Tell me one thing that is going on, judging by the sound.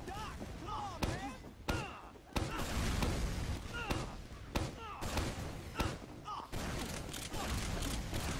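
Gunshots fire in quick bursts, each followed by a rattling echo.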